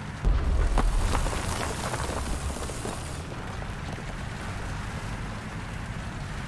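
Tank tracks clatter over the ground.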